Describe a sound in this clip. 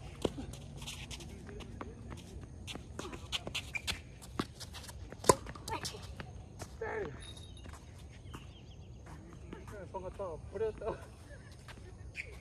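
Tennis balls thwack off rackets and bounce on a hard court outdoors.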